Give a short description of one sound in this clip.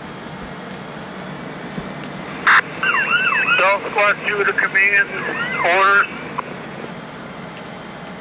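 A large fire roars and crackles outdoors.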